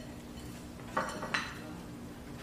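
Dishes clatter briefly as food is handled.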